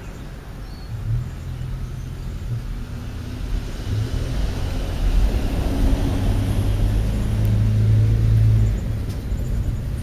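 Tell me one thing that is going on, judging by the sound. A vehicle drives past nearby with a low rumble.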